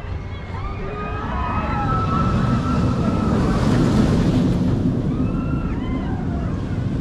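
A roller coaster train rushes past on its track outdoors.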